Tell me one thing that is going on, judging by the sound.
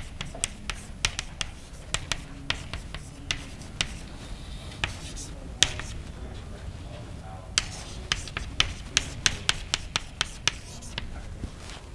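Chalk taps and clicks sharply on a blackboard.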